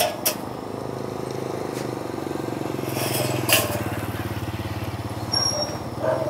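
A motorbike engine hums as it rides past.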